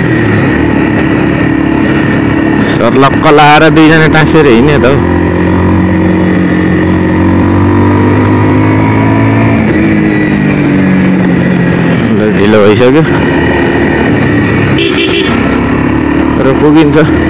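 A motorcycle engine hums steadily and shifts in pitch as the bike rides along.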